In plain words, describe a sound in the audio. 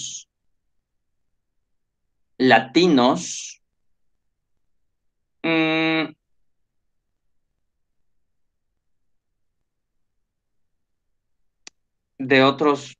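A man speaks calmly through a microphone, in short bursts with pauses.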